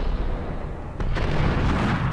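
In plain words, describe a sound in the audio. A shotgun fires a loud blast that echoes in a vaulted tunnel.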